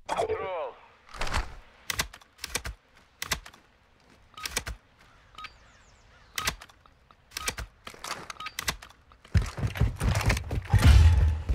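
Gun mechanisms click and clack as weapons are handled.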